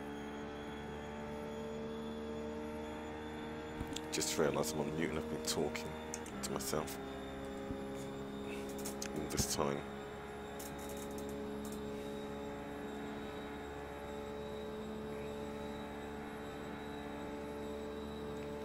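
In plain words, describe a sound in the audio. A race car engine drones at a steady high speed in a racing video game.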